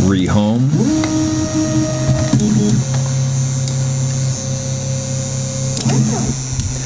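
Stepper motors whine in steady pitched tones as a print head moves.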